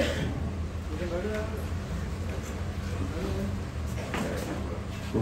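A second man speaks briefly through a microphone and loudspeakers.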